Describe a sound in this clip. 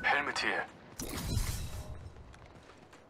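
A gun fires a short burst.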